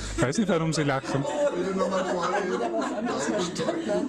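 A woman laughs softly nearby.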